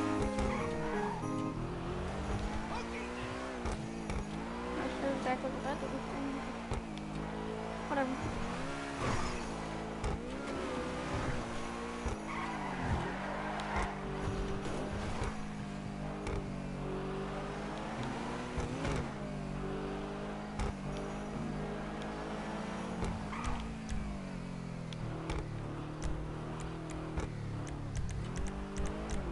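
A sports car engine revs and roars, rising and falling as it speeds up and shifts gears.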